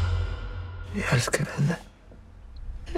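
A man speaks softly, close by, with emotion.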